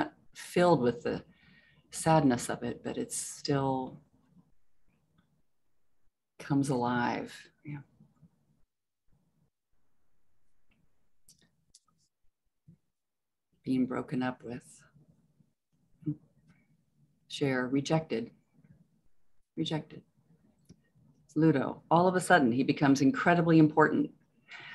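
A woman speaks calmly over an online call, pausing now and then.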